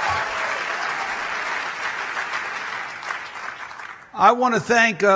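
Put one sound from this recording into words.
A crowd applauds and the clapping fades away.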